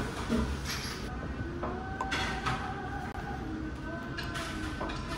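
A lid clinks as it is lifted off a glass jar.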